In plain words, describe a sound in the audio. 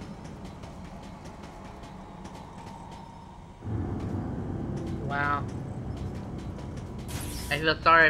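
Metallic footsteps tap at a steady quick pace.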